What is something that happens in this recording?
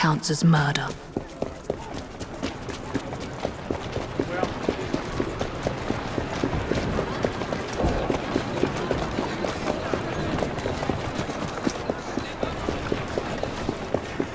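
Quick footsteps run over cobblestones.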